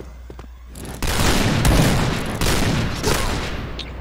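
A rifle fires sharp shots that echo.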